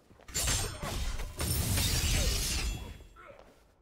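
Loud fiery magic blasts roar and whoosh in a fight.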